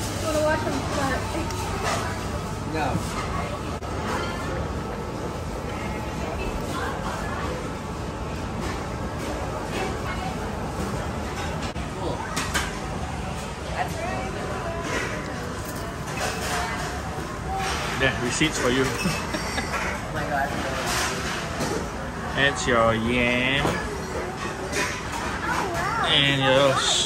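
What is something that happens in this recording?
Many voices murmur in a busy room.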